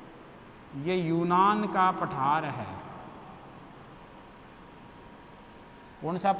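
A man lectures clearly into a close microphone, in short bursts with pauses.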